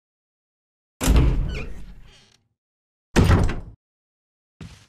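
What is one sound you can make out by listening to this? A heavy wooden door creaks open with a loud thump.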